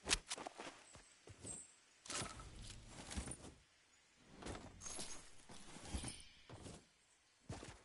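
Footsteps tap on a hard roof.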